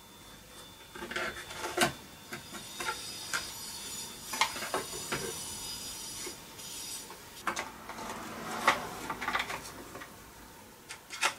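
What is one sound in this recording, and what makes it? Engine parts scrape and rattle as they are worked loose.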